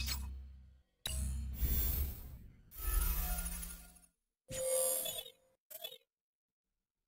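Electronic swooshes and beeps play in quick bursts, then stop.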